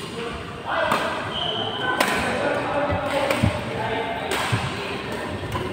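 Rackets smack shuttlecocks with sharp pops in a large echoing hall.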